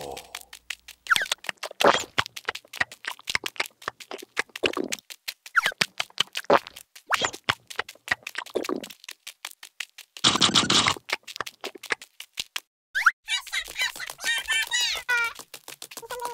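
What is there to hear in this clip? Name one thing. Many small feet patter quickly across the ground.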